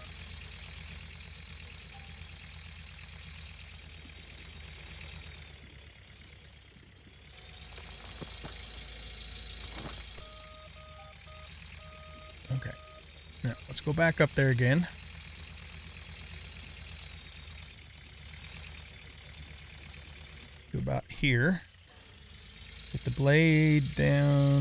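A heavy loader engine rumbles steadily.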